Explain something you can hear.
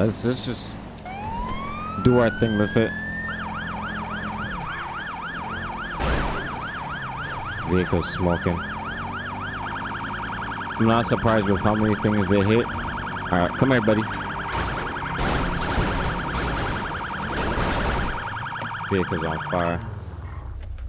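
A police siren rises, then wails and yelps rapidly.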